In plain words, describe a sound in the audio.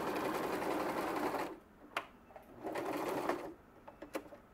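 A sewing machine whirs in short bursts as it stitches.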